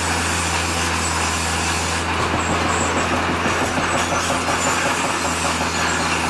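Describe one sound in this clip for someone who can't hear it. A bulldozer blade scrapes and pushes rocks and soil.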